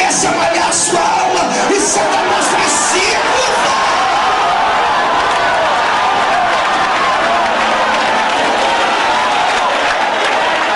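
A crowd cheers and shouts loudly throughout.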